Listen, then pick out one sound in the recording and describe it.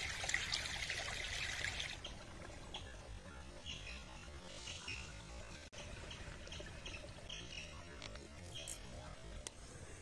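Shallow water trickles over stones.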